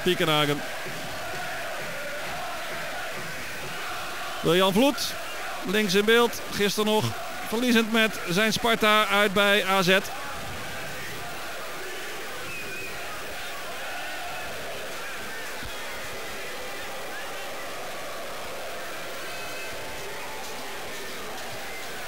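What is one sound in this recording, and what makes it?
A large stadium crowd murmurs steadily outdoors.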